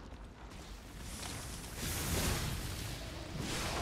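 Fire roars in a burst.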